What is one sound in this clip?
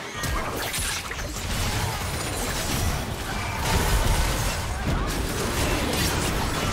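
Game spell effects and weapon hits burst and crackle in a rapid fight.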